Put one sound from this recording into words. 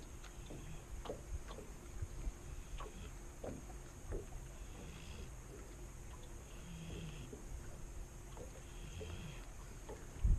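Wind blows across the open water.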